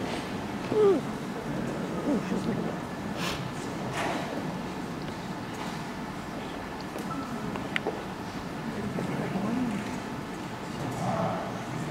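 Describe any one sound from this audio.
Shoes slide and tap softly on a dance floor.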